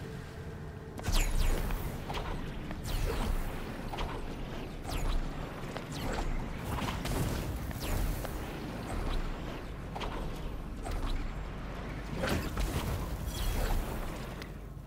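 Water splashes in quick, uneven bursts.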